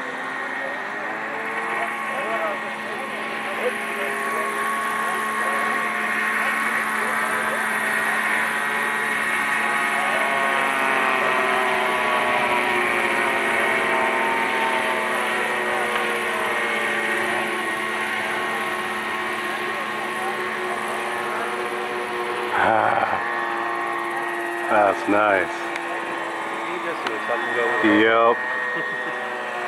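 A model helicopter's engine whines steadily, its pitch rising and falling.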